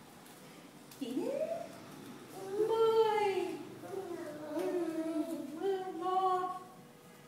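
A woman talks nearby in a gentle, sing-song voice.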